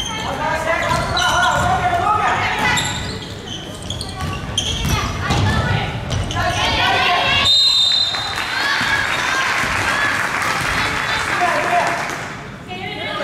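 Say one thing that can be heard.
A crowd of young players cheers and shouts in an echoing hall.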